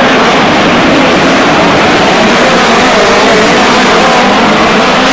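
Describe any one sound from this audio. A crowd cheers noisily in the stands.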